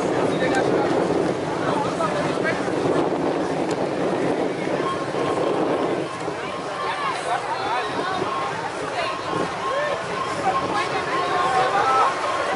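A crowd of people chatters and talks loudly outdoors.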